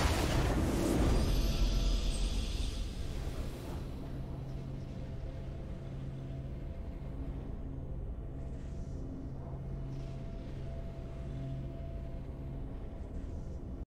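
Low, steady game music hums underneath.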